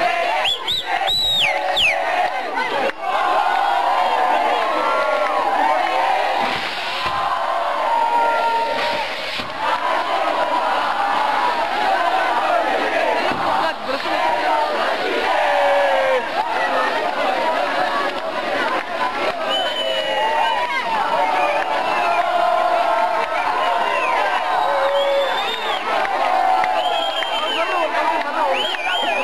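A crowd of young men cheers and chants loudly outdoors.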